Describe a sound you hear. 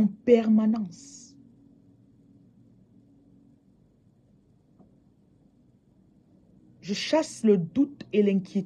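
A woman speaks calmly and close to a microphone, pausing between phrases.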